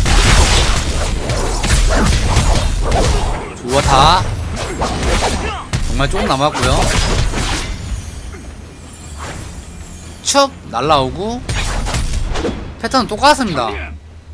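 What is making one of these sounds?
Game swords clash with loud hits.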